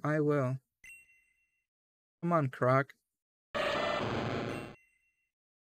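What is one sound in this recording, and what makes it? Short electronic game sounds chirp and buzz.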